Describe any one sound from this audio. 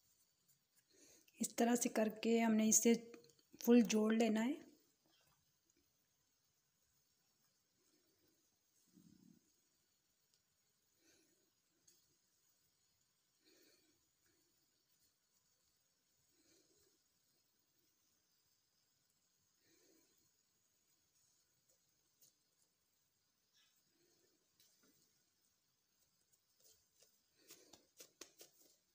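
Fingers softly pinch and press soft dough.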